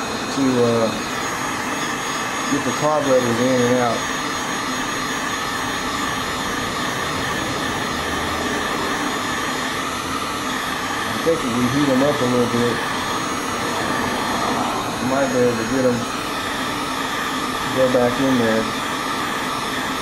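A heat gun blows with a steady, rushing hum.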